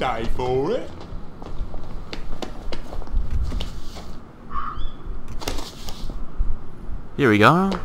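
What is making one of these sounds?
Footsteps tread on cobblestones at a steady walking pace.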